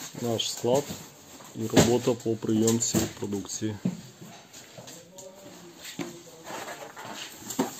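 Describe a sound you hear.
Cardboard boxes bump and scrape as they are carried and stacked.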